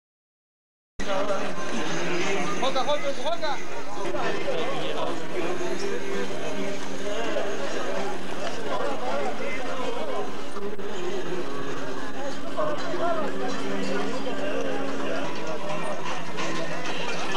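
A crowd of men chatters in a busy outdoor market.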